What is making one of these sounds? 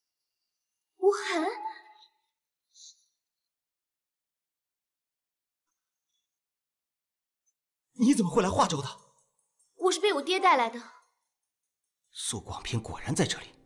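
A young man speaks with surprise, close by.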